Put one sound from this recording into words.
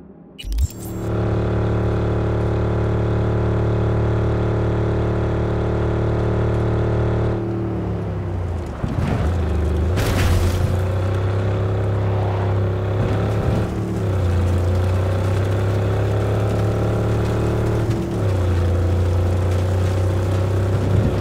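A car engine hums steadily, shifting pitch as the car speeds up and slows.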